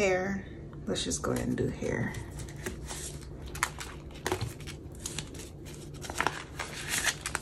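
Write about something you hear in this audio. A plastic envelope crinkles as it is opened.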